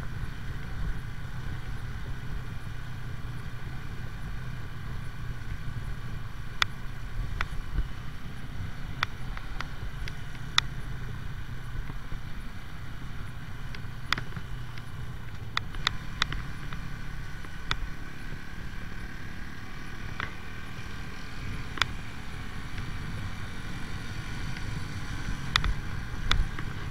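Wind rumbles and buffets past the rider.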